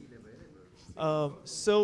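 A younger man speaks into a microphone.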